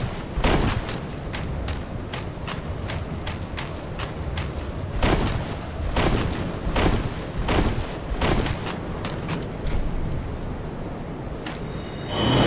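Armoured footsteps crunch quickly over snow.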